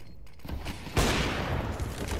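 A rifle fires a single loud, echoing shot.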